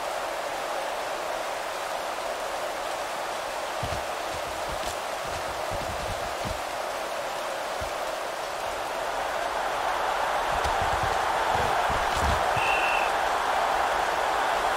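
A large crowd roars steadily in a stadium, growing louder.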